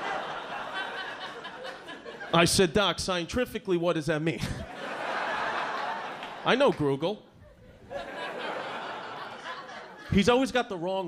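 An audience laughs and murmurs.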